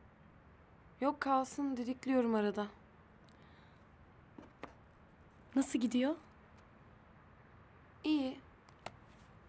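A second young woman answers softly.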